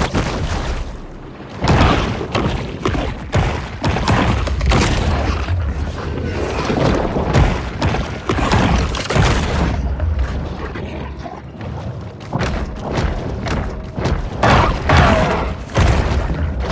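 Water rumbles and swirls in a low, steady underwater wash.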